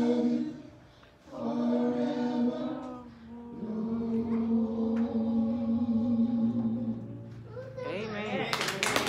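A woman sings into a microphone in a large room.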